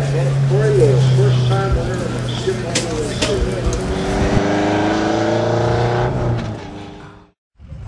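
A racing car engine roars and revs as the car pulls away.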